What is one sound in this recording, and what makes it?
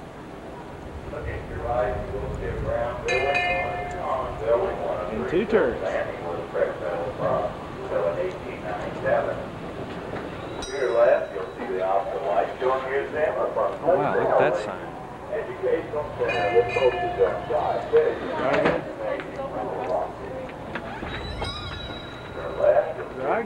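Men and women chat casually close by outdoors.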